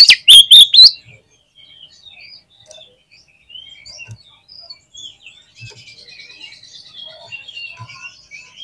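A songbird chirps softly and steadily.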